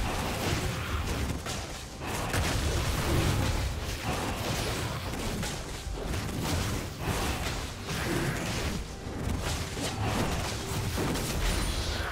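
Magic spells whoosh and crackle in a fantasy battle.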